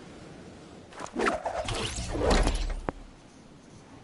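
A game glider snaps open with a loud whooshing flutter.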